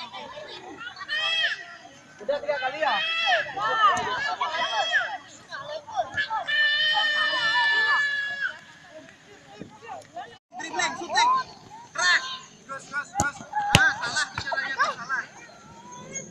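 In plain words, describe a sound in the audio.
Young children shout and call out excitedly outdoors.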